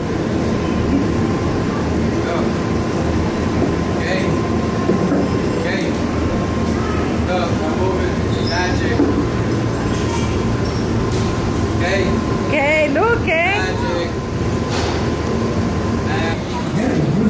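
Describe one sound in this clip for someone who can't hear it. A strong air blower roars steadily.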